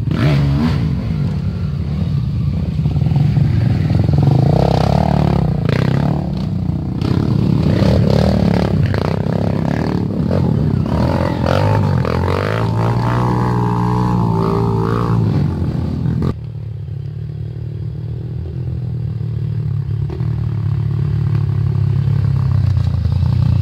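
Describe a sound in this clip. Dirt bike engines rev and roar close by.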